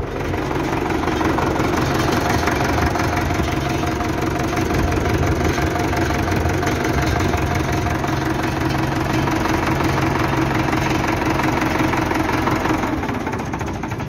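A tractor engine idles close by with a steady, loud rumble.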